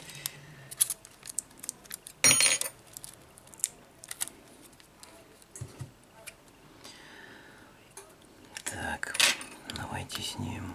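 A metal tool clicks and scrapes against small plastic parts.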